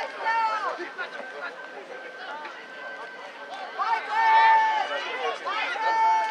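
Young men shout outdoors across an open field.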